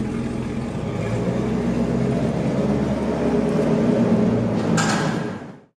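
A car engine revs louder as the car pulls away.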